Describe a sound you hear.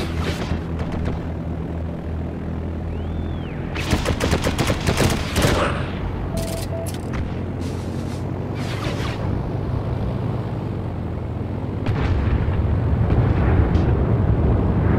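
Propeller engines drone steadily.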